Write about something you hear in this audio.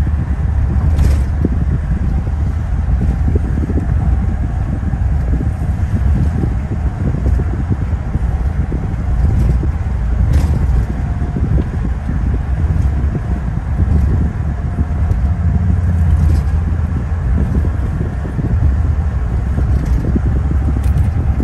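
A car passes close by in the next lane.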